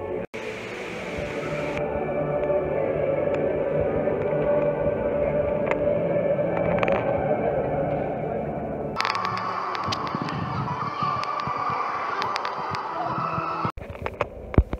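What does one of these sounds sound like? A crowd of people murmur softly in a large echoing hall.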